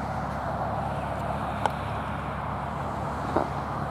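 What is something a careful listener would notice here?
A bald eagle flaps its wings as it lands on a branch.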